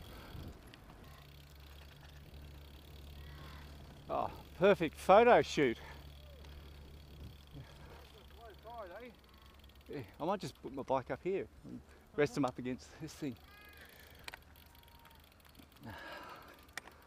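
Bicycle tyres roll steadily over a path and grass.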